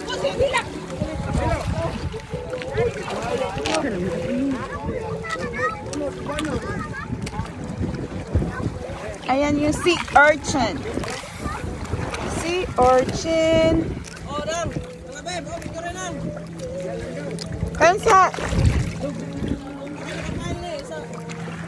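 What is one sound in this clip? Shallow water sloshes and laps.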